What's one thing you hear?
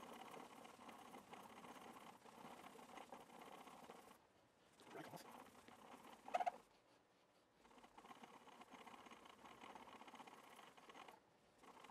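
A cloth rubs briskly back and forth on a wooden guitar neck.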